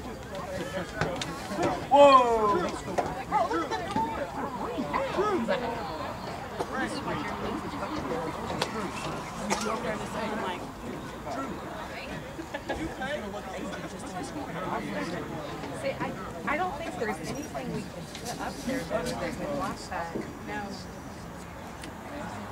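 Young women shout and call out to each other outdoors across an open field.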